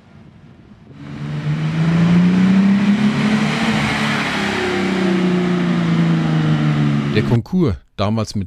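A car engine rumbles and rises in pitch as the car drives past, then fades.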